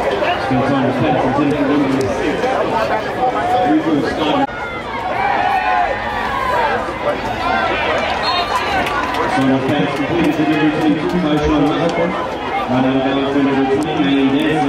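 A large crowd cheers and chatters outdoors.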